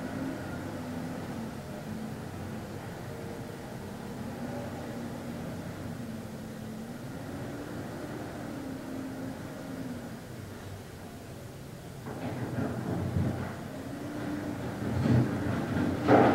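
A man hums a low, slow chant close by.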